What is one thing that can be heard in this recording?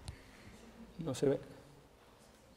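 An elderly man speaks briefly in a large echoing room.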